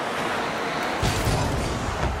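A car crashes into another car with a thud.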